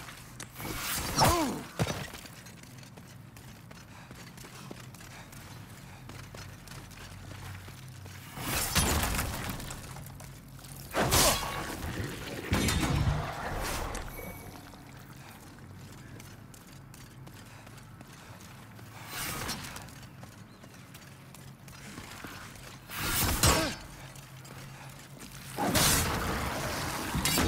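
Weapon swings whoosh and strike with heavy thuds.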